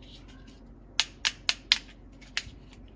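Plastic halves snap together with sharp clicks.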